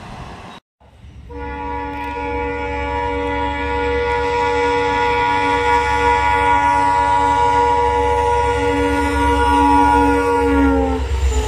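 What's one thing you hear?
A diesel engine rumbles low as a train nears.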